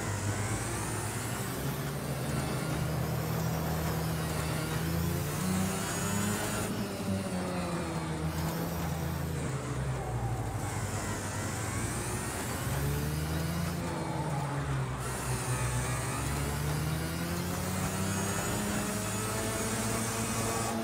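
A kart engine hums and revs up and down steadily.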